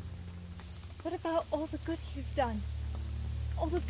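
A young woman speaks up close in a low, serious voice.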